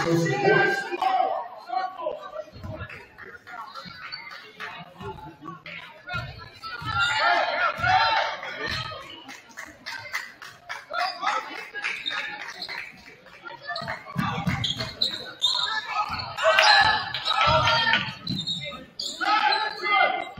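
A crowd of spectators cheers and chatters in an echoing gym.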